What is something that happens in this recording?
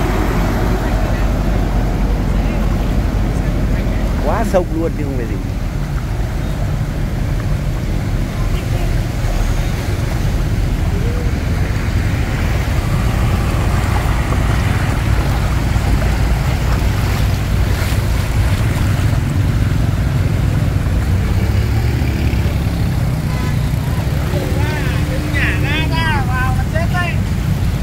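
Motorbike engines rumble steadily close by.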